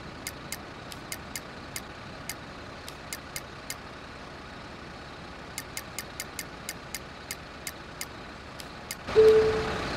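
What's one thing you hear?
Menu clicks tick quickly in short bursts.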